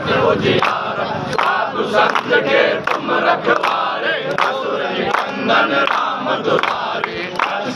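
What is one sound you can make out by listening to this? Men clap their hands in rhythm.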